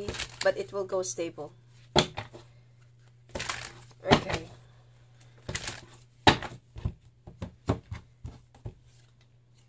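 Playing cards riffle and slap as they are shuffled on a wooden table.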